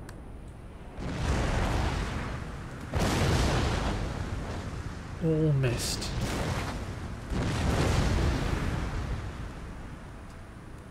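Cannons boom and muskets crackle in heavy volleys.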